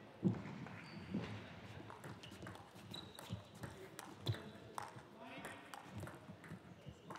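A table tennis ball clicks back and forth off paddles and the table in a quick rally.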